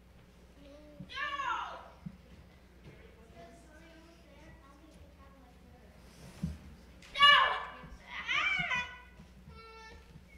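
A young boy speaks loudly, acting out lines.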